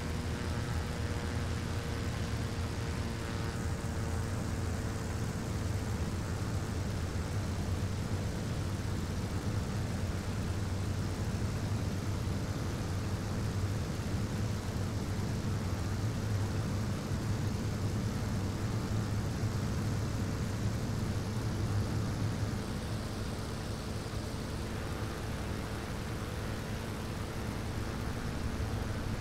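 A propeller plane's engine roars steadily.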